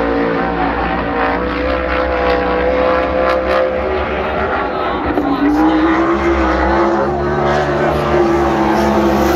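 Race car engines roar and whine around a track.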